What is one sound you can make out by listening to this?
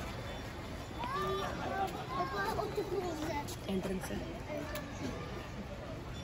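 A man and a woman talk casually nearby.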